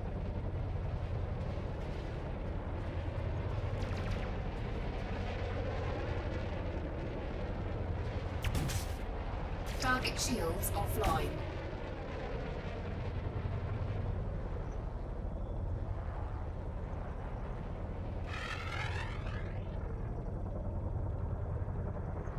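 A spaceship's engine hums low.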